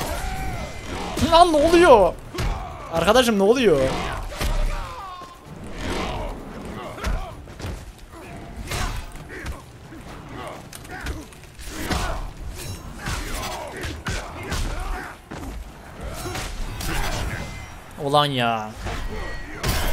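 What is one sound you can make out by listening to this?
Game fighters grunt and shout as blows land.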